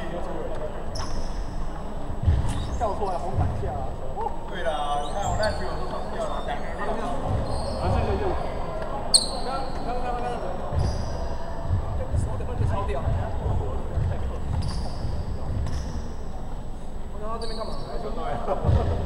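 Basketball sneakers squeak on a hardwood court in an echoing gym.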